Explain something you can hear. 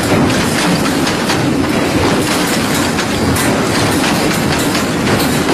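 A wire-weaving machine clatters and rattles steadily.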